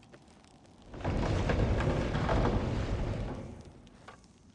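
Fire whooshes up as a torch sets cobwebs alight.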